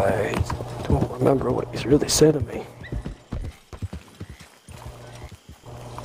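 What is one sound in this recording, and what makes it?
A horse's hooves clop at a steady trot.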